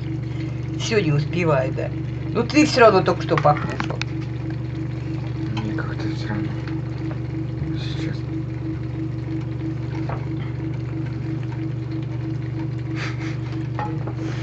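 A metal spoon scrapes and clinks against a cooking pot.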